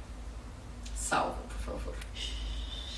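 A woman speaks briefly and calmly, close by.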